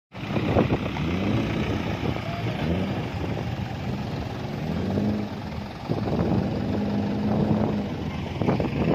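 A truck engine rumbles and shifts through gears as the truck drives past.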